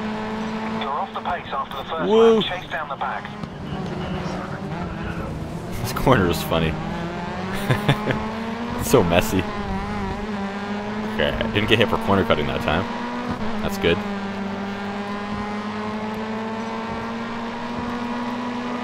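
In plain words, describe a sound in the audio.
A racing car engine roars steadily, its pitch rising and falling as it changes gear.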